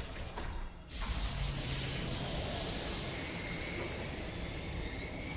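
Steam hisses loudly out of a vent.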